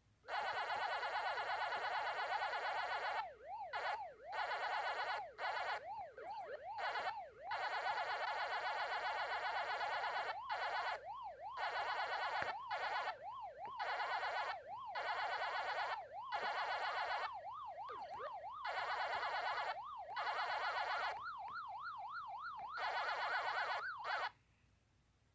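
An arcade maze game plays fast electronic chomping and siren tones.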